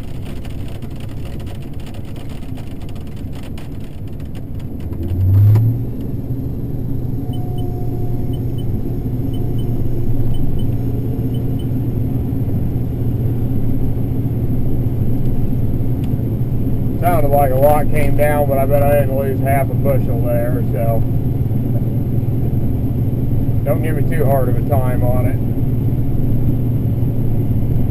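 A combine harvester drones under load while harvesting corn, heard from inside the cab.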